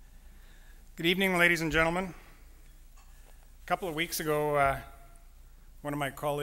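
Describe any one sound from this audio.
A man speaks through a microphone, pausing between phrases.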